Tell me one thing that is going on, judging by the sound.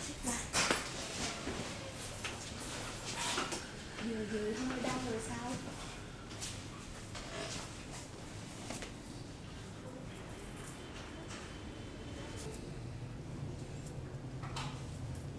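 Hands rub and press on cloth-covered skin.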